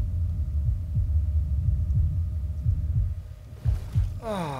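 Water rumbles and bubbles, muffled as if heard underwater.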